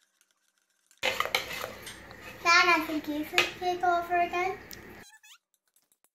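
A young girl speaks brightly and close by.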